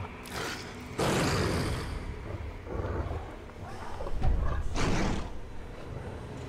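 A beast snarls and growls loudly.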